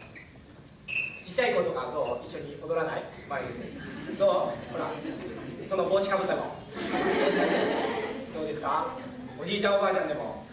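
A large choir of young voices sings loudly in an echoing hall.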